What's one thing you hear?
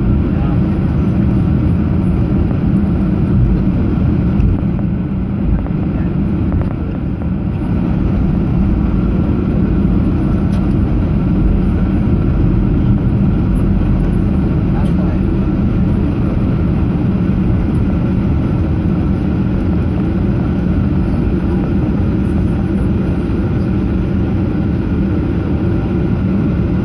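A vehicle rumbles steadily as it rolls along, heard from inside.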